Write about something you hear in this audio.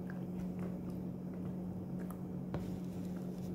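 A middle-aged woman chews food close by.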